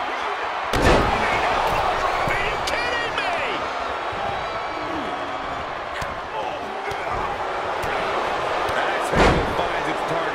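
A heavy body thuds onto a wrestling ring mat.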